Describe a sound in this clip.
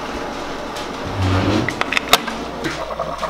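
A coffee maker lid snaps shut.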